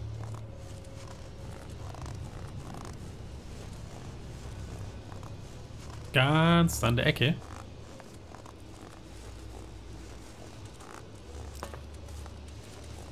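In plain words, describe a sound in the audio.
Footsteps crunch quickly through snow.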